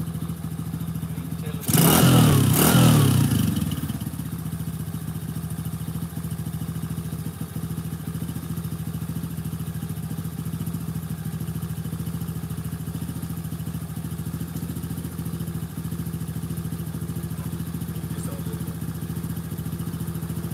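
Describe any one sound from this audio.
A small engine idles with a steady rattling putter.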